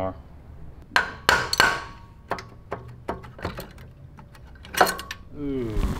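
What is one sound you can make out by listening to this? Metal parts clink and knock on an engine.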